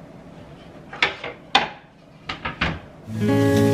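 Kitchenware clinks and knocks on a counter.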